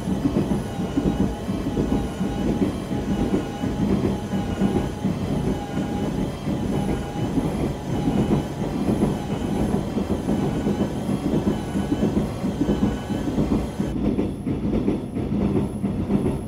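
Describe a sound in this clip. A train rumbles steadily along the tracks with a low motor whine.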